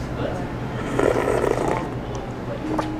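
A man slurps soup from a spoon.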